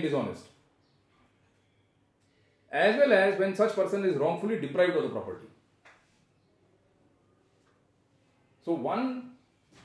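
An older man speaks calmly and with emphasis, close to a microphone, pausing between phrases.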